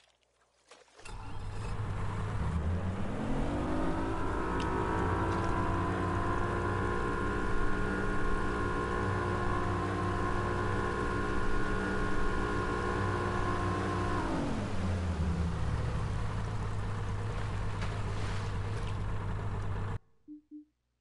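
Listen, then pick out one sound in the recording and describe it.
A boat's outboard motor starts, revs up to a steady drone, then slows back down.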